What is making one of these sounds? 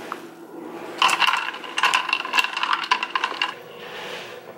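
A straw stirs ice in a plastic cup.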